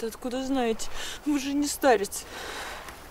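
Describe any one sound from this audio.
A young woman speaks pleadingly, close by.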